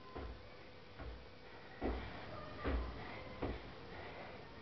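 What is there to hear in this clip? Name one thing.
Sneakers thump on the floor in short steps.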